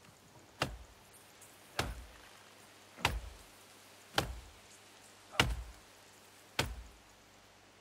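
An axe chops into a tree trunk with steady, thudding blows.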